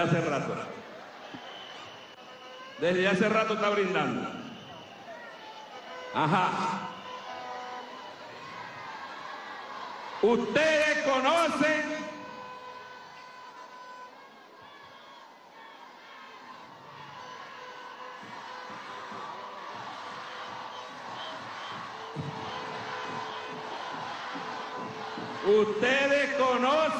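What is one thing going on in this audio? A large crowd cheers and murmurs outdoors.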